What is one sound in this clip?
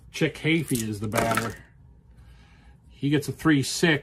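Dice clatter as they roll across a game board.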